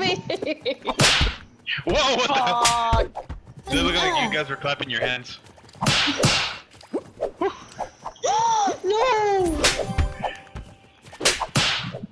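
Cartoon slap sounds smack now and then.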